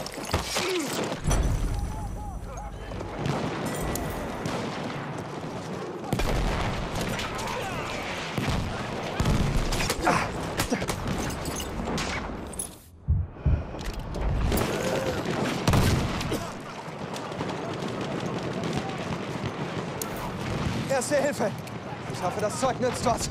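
Rifle shots crack loudly and repeatedly.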